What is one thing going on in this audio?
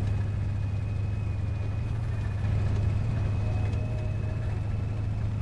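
A heavy tank engine rumbles low and steady.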